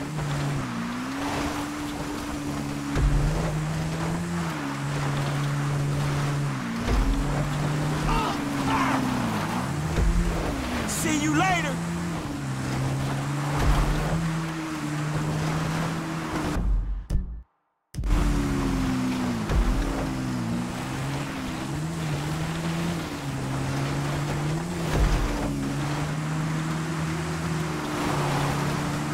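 A quad bike engine buzzes steadily, its pitch dipping and rising as it revs.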